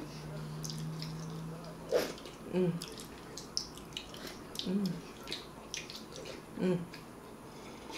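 A woman slurps loudly from a plate.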